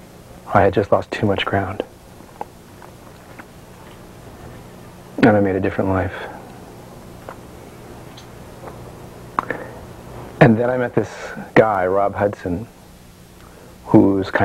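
A middle-aged man speaks calmly and close by, in short bursts with pauses.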